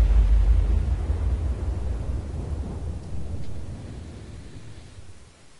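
Wind rushes loudly past a falling person and slowly fades.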